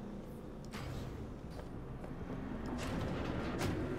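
A heavy door slides open.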